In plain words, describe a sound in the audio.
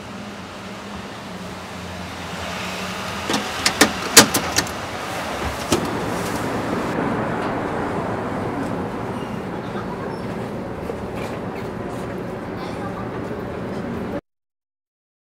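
City street noise hums steadily outdoors.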